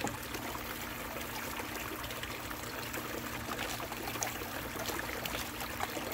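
Water splashes and trickles steadily down into a tub.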